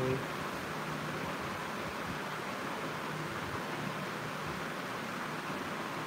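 A young man speaks quietly close to the microphone.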